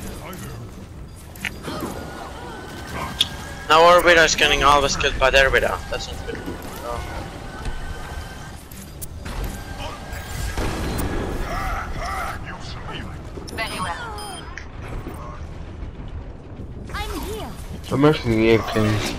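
Gunfire and energy weapons crackle and zap in a game battle.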